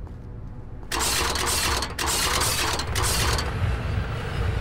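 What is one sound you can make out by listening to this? Metal spikes shoot up from a floor with a sharp scraping burst.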